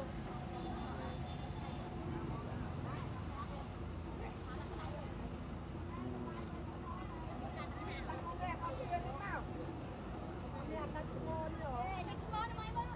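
Several people talk nearby outdoors.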